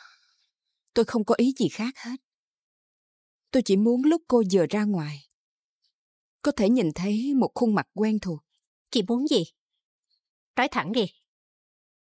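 A woman speaks calmly nearby, in short phrases with pauses.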